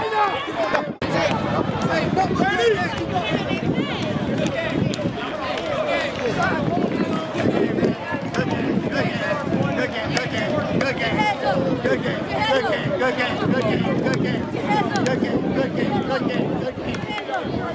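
Children slap hands as they pass one another.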